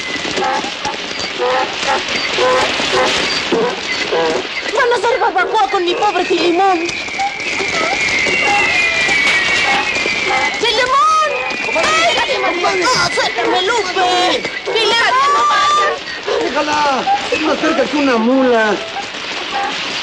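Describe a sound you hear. A crowd of men and women shout and cry out.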